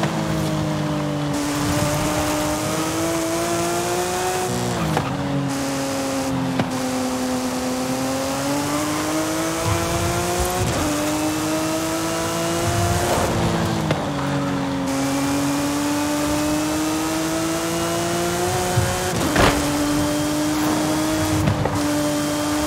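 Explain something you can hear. A sports car engine roars at high revs, rising and dropping as gears shift.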